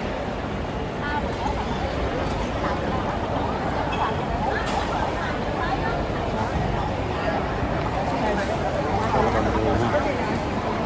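A crowd of adults chatters in a large echoing hall.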